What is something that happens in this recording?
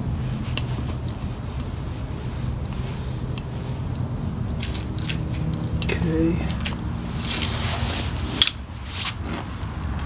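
A metal hose fitting clicks and clatters as it is twisted onto a grease gun.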